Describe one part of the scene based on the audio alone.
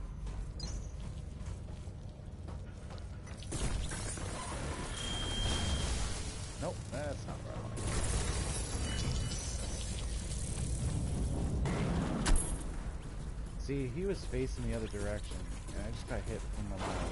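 Heavy armoured footsteps clank on a metal floor.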